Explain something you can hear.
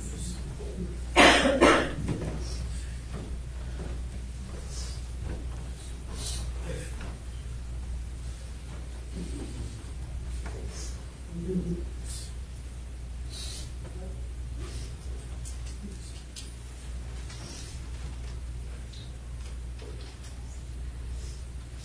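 Several men pray quietly in low murmuring voices.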